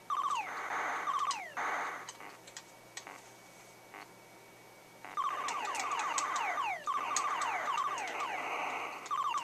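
Electronic laser shots zap rapidly in falling bleeps.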